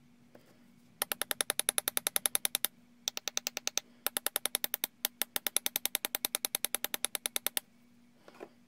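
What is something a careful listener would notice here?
A tool scrapes rapidly and repeatedly against a small hard object.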